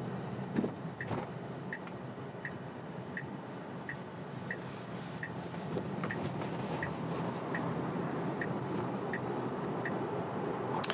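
A car's turn signal ticks at an even pace.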